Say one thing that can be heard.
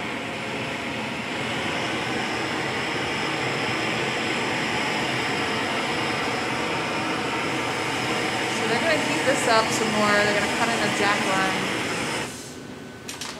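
A gas torch roars steadily, then cuts off.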